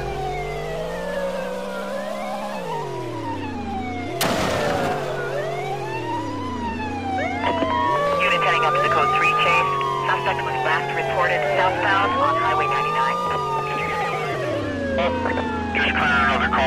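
A car engine revs up and down throughout.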